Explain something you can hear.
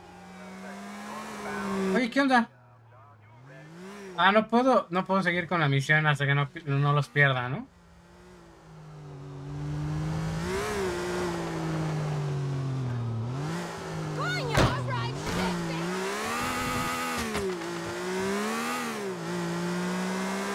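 A car engine hums and revs up and down.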